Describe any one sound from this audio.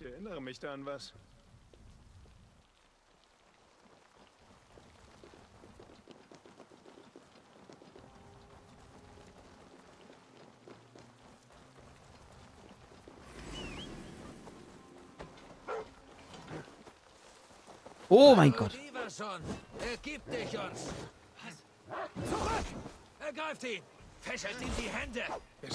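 A man talks into a microphone, close by.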